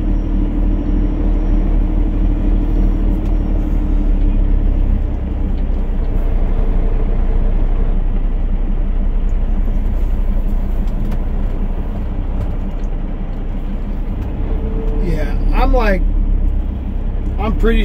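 A car engine hums steadily from inside.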